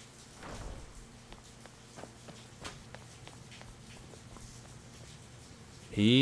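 Footsteps tread softly up stone stairs.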